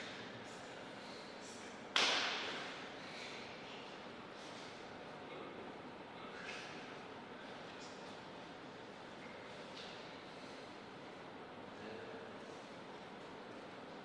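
A man's footsteps shuffle softly on a hard floor in an echoing hall.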